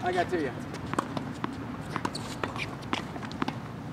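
A tennis ball bounces on a hard court several times.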